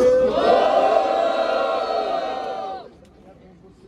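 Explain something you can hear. A young man raps loudly.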